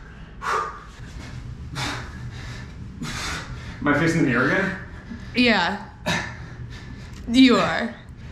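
A young woman laughs close to the microphone.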